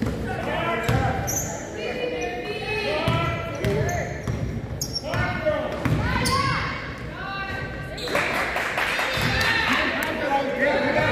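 Young girls shout and call out across the court.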